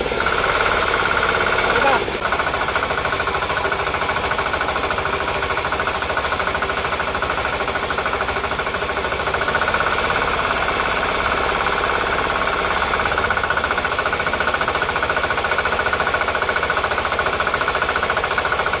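An engine runs with a steady, fast chugging throb.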